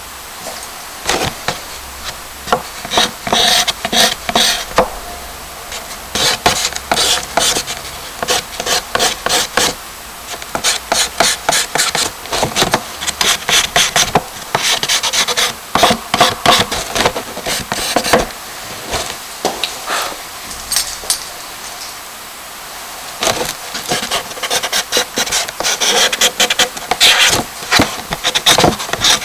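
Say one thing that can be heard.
A charcoal stick scratches and rubs rapidly on paper.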